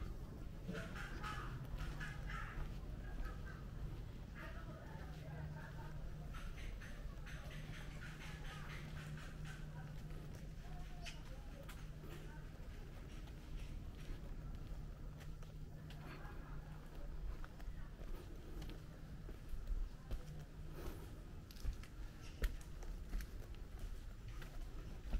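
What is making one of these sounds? Footsteps tread slowly on pavement close by.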